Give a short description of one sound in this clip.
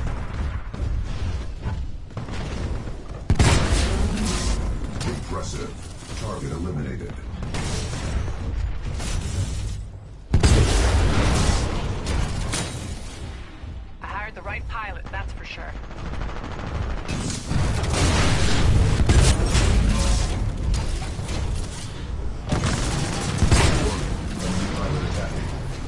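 Heavy gunfire booms and rattles in rapid bursts.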